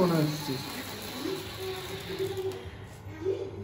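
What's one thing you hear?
A sparkler candle fizzes and crackles.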